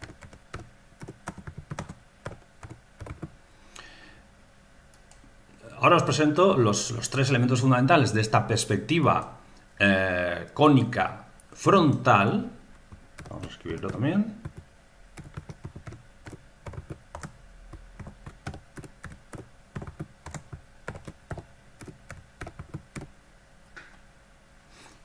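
Keys click quickly on a keyboard.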